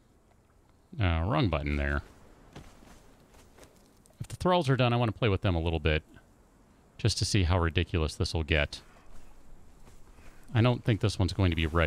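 A man talks into a close microphone, in short bursts.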